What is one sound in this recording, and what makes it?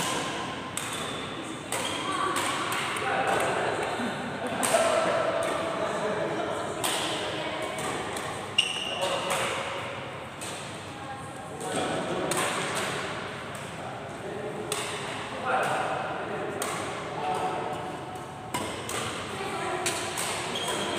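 Badminton rackets hit a shuttlecock in a large echoing sports hall.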